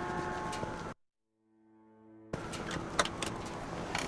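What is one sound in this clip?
A car door opens with a click.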